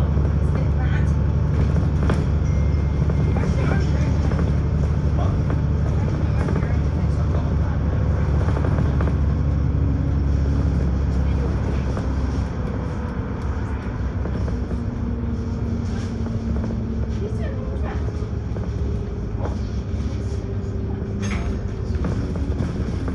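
A bus engine rumbles low and steady, easing off partway through.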